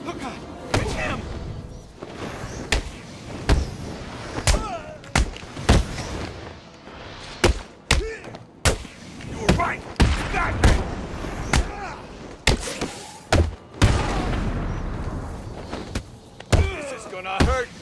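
Men grunt and cry out in pain as they are hit.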